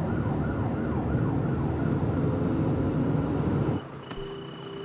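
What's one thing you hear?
A vehicle engine rumbles low and steady from inside the cab.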